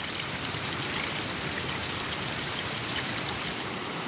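Water pours from a spout and splashes into a full basin.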